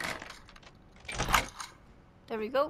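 A metal door lock rattles and clanks.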